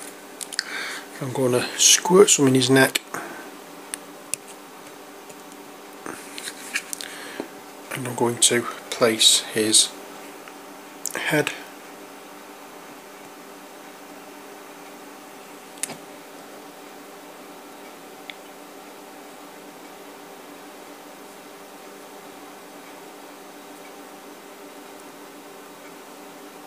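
Small plastic parts tap and click as they are handled.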